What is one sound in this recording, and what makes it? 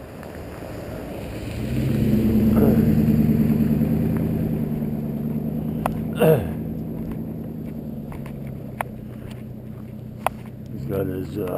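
A pickup truck drives past on a gravel road with a rising and fading engine rumble.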